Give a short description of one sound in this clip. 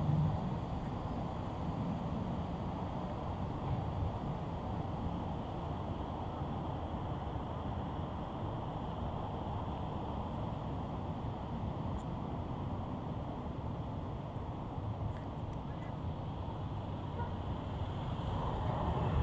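Traffic rumbles steadily nearby.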